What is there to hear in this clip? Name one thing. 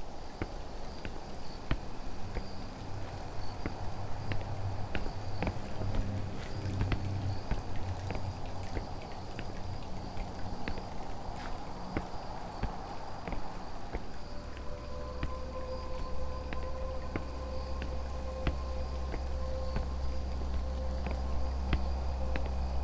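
Footsteps walk on a stone floor.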